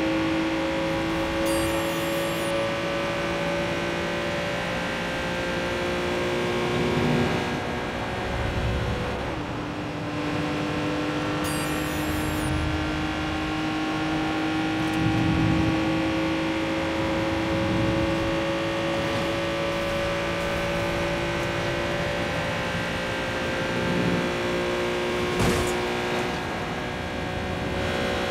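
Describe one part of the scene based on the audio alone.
A sports car engine hums steadily at speed, its pitch slowly rising and dropping with gear changes.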